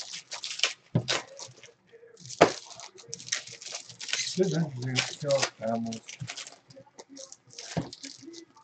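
Foil card wrappers crinkle and tear open.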